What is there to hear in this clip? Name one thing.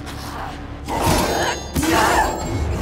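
A sword clashes against metal.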